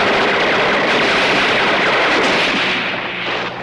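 An explosion blasts loudly.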